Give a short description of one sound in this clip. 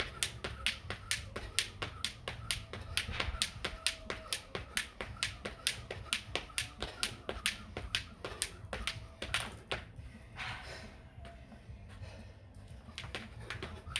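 A jump rope whips and slaps the ground in a fast, steady rhythm.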